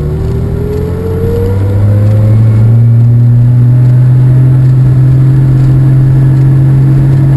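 A car engine drones loudly and slowly rises in pitch as it speeds up.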